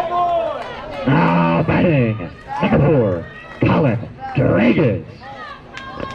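Young players shout and cheer loudly nearby.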